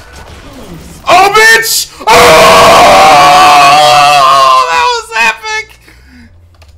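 A man shouts loudly and excitedly into a close microphone.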